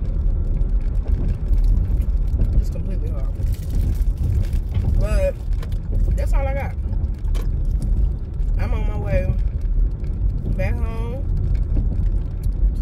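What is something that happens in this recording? A car engine rumbles low and steady while driving.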